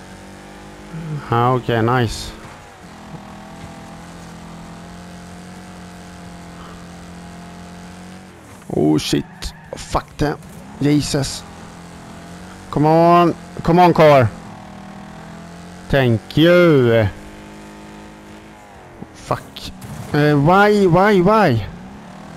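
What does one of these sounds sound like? A car engine roars steadily as it races along.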